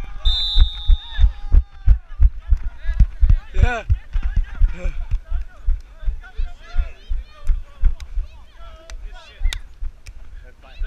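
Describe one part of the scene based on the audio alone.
Young men shout and cheer nearby.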